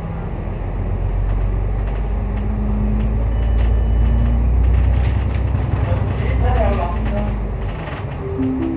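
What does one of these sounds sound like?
Tram wheels rumble and rattle over the rails.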